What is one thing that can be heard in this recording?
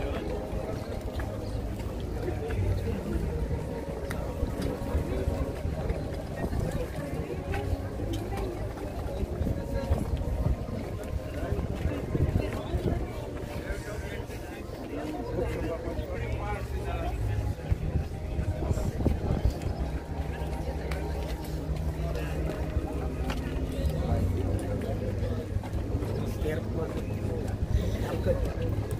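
A crowd of men and women murmurs and talks quietly outdoors.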